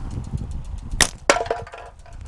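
Two sharp gunshots crack outdoors, close by.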